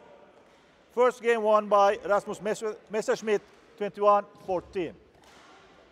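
A man announces through a loudspeaker in a hall.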